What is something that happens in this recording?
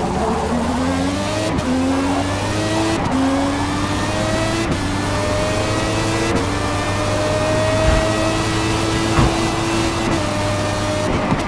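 A racing car engine revs higher and higher, dropping briefly at each gear change.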